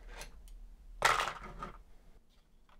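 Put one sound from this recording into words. A plastic bin knocks and scrapes on a hard surface.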